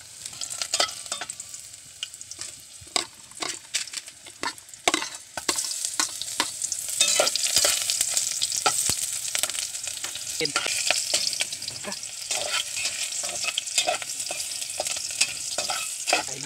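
A metal spatula scrapes and clinks against a pot.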